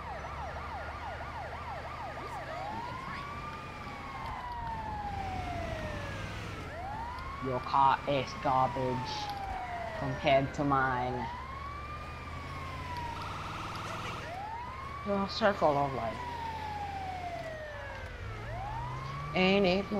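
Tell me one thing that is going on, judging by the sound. A siren wails steadily up and down.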